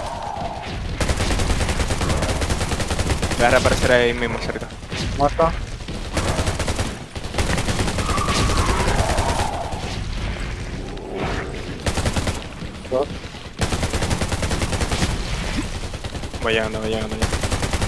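Rapid gunfire rattles close by.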